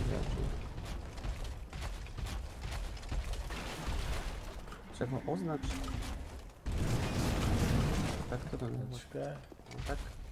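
Game sound effects clatter and thud.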